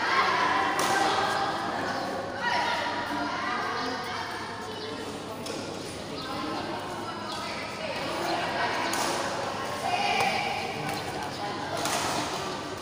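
Rackets strike a shuttlecock with sharp taps, echoing in a large hall.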